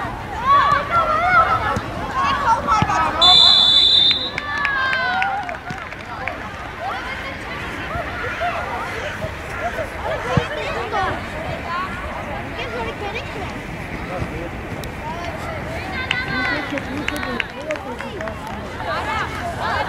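Players shout and call out across an open field outdoors.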